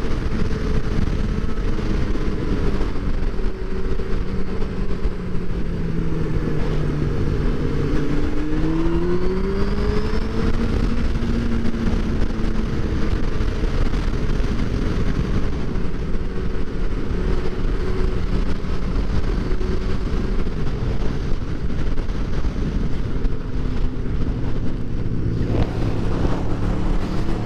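A motorcycle engine hums steadily and rises and falls in pitch as it rides.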